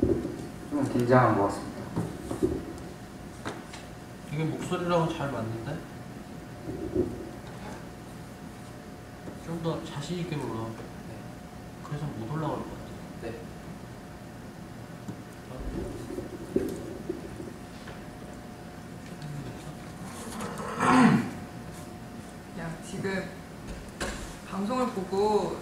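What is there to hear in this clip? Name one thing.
A young man speaks calmly into a microphone, pausing often.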